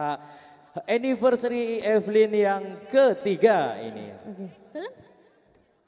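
A young woman sings loudly through a microphone and loudspeakers.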